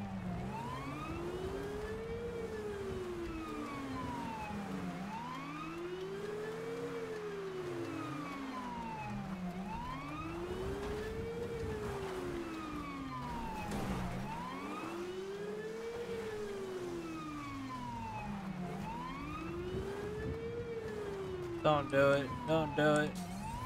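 A police siren wails steadily up and down.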